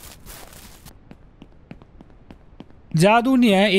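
Footsteps run lightly on hard pavement.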